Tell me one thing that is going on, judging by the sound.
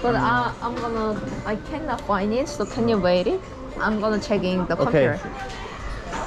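A young woman talks animatedly close by.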